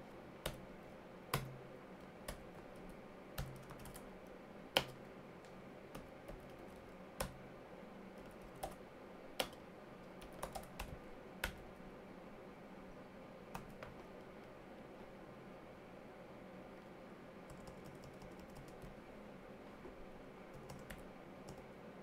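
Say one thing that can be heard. Keys clack on a keyboard now and then, close by.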